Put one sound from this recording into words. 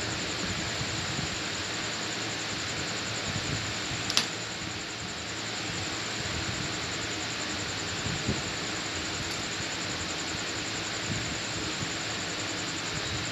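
Cauliflower florets snap and crack as they are cut on a blade.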